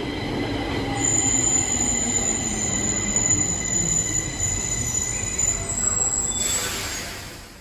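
Train brakes squeal with a high, steady whine as the train slows.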